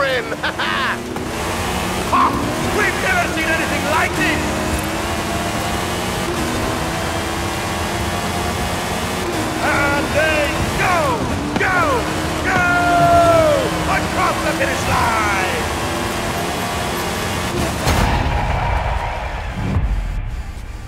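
Tyres skid and crunch on loose dirt.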